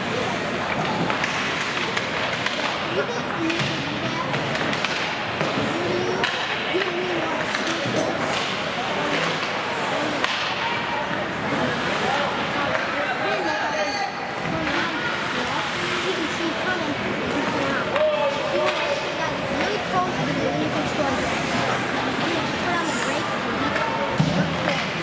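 Young players shout and call out to each other across the rink.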